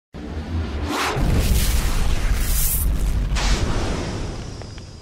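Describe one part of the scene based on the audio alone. A burst of fire roars and whooshes.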